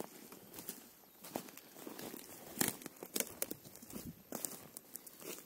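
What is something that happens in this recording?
Footsteps crunch and snap on dry twigs and forest litter.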